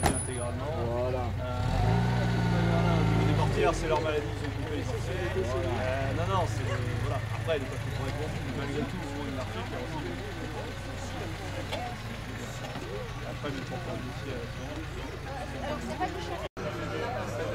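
A small car engine revs and idles nearby.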